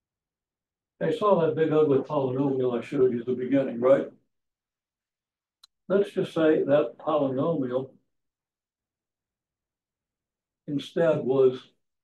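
An elderly man speaks calmly, explaining in pauses.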